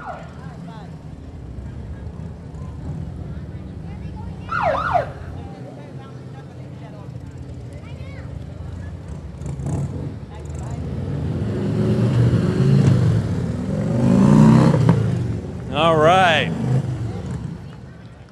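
Motorcycle engines rumble loudly as they pass by close.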